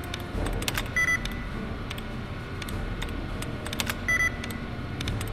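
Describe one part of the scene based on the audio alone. A computer terminal gives a short electronic beep.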